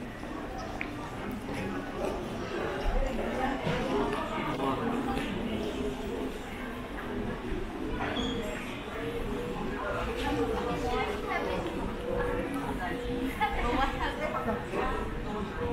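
Footsteps tap on a hard floor in a large echoing hall.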